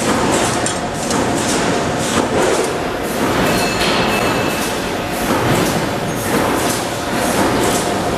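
Metal rods clink against each other.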